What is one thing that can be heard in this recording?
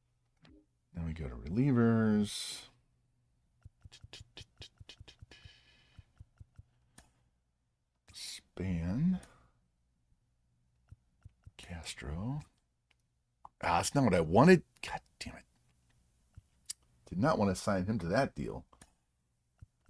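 A man talks with animation, close to a microphone, in short bursts.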